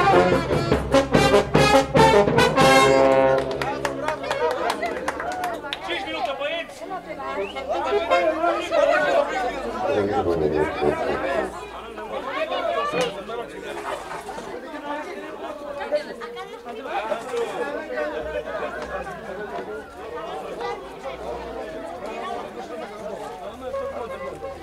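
A brass band plays lively music outdoors.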